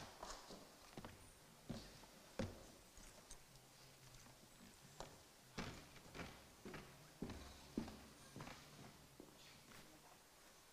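Footsteps thud on a wooden stage in a large hall.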